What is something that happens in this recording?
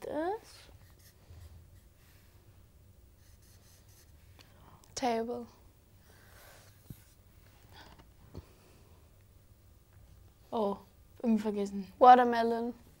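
A marker squeaks faintly across paper.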